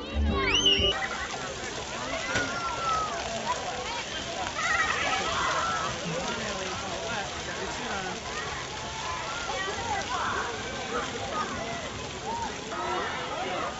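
Children shout and laugh outdoors.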